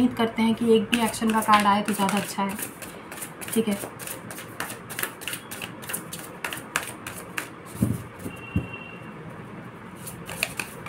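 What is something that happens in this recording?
Paper rustles and flicks.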